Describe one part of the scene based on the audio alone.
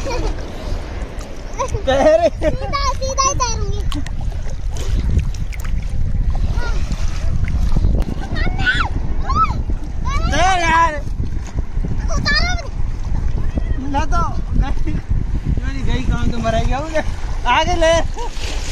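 Water splashes around people wading in the sea.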